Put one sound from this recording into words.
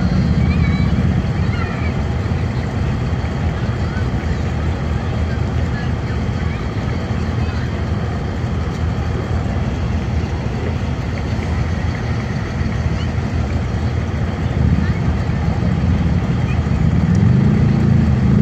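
A car engine idles nearby.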